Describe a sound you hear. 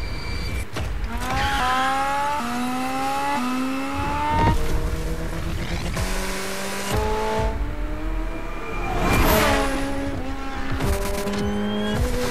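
A racing car engine revs hard, climbing in pitch and dropping with each gear change.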